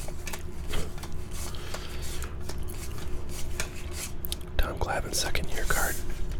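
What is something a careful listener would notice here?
Cards slide and tap against each other as hands shuffle through them.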